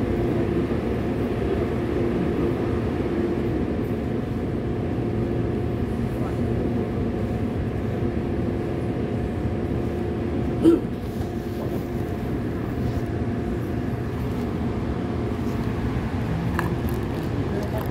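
A subway train rumbles and hums steadily.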